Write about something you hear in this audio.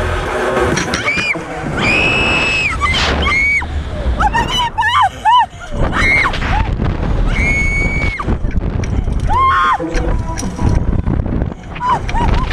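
Two young women scream loudly and shriek with excitement, close by.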